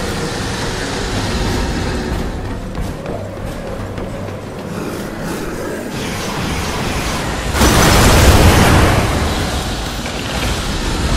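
Heavy armoured footsteps thud on wooden planks and stone.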